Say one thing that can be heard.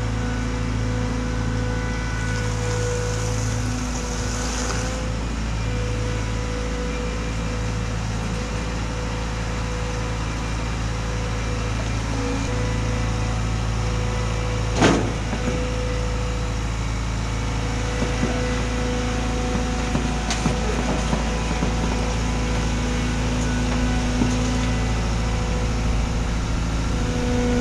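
A diesel engine of a compact track loader hums steadily nearby.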